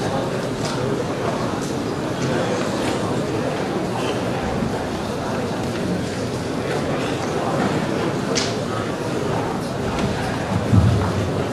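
A young man speaks into a microphone over loudspeakers in a large hall.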